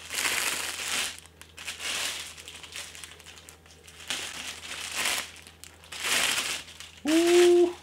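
Plastic wrapping crinkles and rustles as it is pulled off.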